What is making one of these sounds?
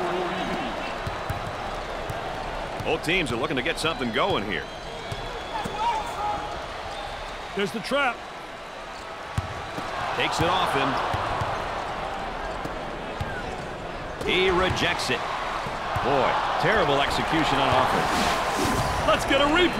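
A large crowd roars in an echoing arena.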